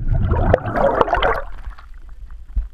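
Water bubbles and gurgles close by.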